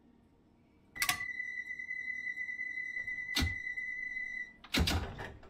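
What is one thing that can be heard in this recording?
A train's door warning tone sounds steadily.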